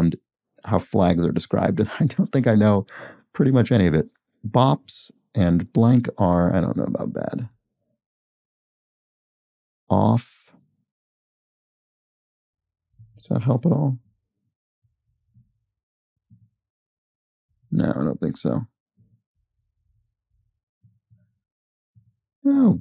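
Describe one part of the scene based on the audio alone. A young man speaks calmly and thoughtfully into a close microphone, in bursts with pauses.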